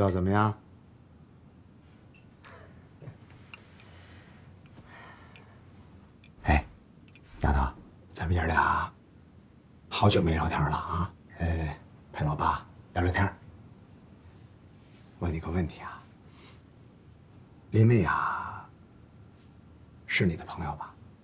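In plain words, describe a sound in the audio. A middle-aged man talks warmly, close by.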